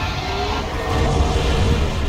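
A small fire crackles.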